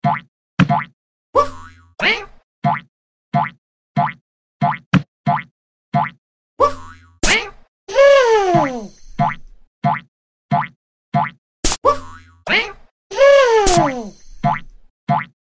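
A cartoon ball bounces again and again with short springy pops.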